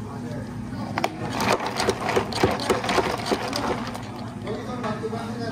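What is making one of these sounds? A plastic lid snaps and crackles onto a cup.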